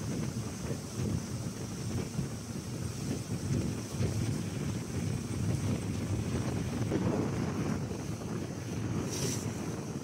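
Water rushes and splashes against a small boat's hull.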